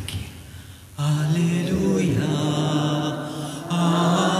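A man chants in a low voice through a loudspeaker.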